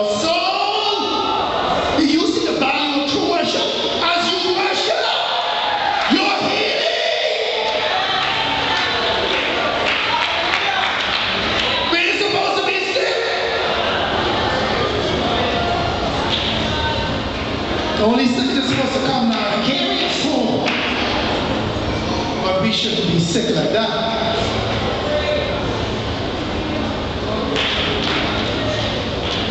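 A man speaks with animation over loudspeakers in a large echoing hall.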